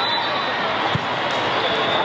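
A volleyball is struck with a slap.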